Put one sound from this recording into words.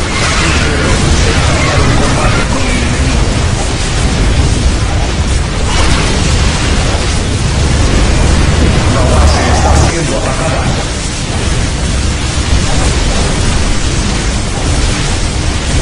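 Laser blasts and explosions crackle without a break in a loud game battle.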